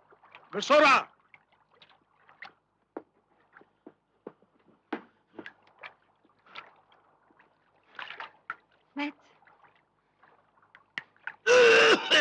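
Bodies scuffle and thump against a hard surface.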